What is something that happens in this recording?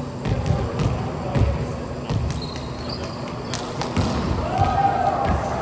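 A volleyball is struck and thumps in a large echoing gym.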